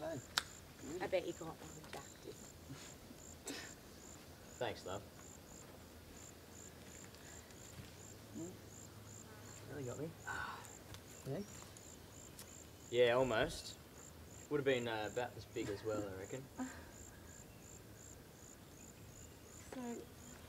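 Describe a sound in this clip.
Young men and women talk casually a short distance away outdoors.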